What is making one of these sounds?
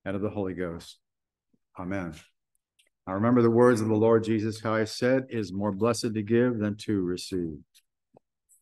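An elderly man speaks calmly through an online call microphone.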